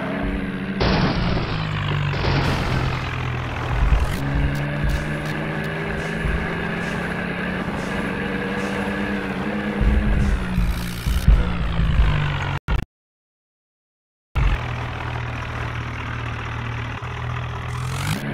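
A tractor engine rumbles and revs.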